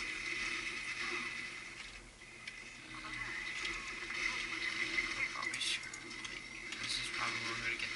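A video game's healing beam hums and crackles steadily, heard through small speakers.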